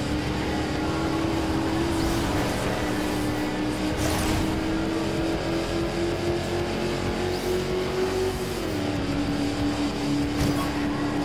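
Tyres rumble over grass and road.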